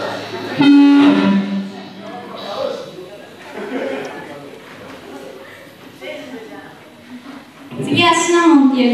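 An electric guitar plays loudly through an amplifier in a large echoing hall.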